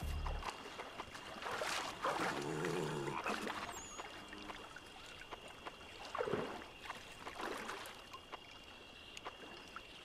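Water splashes as a figure wades through a shallow stream.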